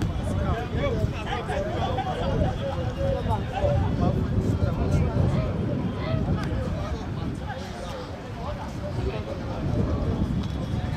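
Wind rumbles across a microphone.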